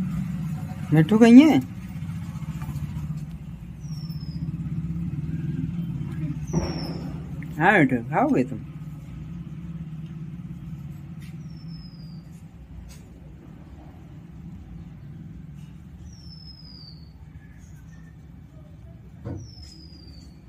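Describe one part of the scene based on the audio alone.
A parrot squawks and chatters loudly close by.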